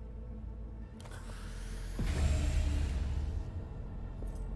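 An inhaler hisses in a puff of vapour.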